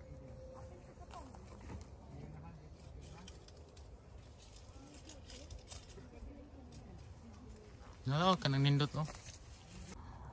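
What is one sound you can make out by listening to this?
Leaves rustle as apples are pulled from a tree.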